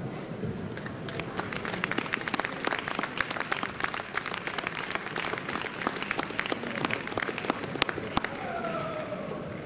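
A piano plays.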